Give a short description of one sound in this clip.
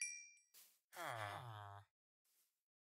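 Game villagers grunt.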